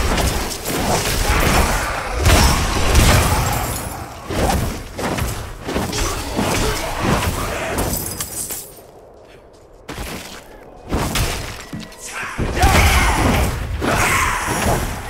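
Fiery blasts and clashing combat effects burst repeatedly.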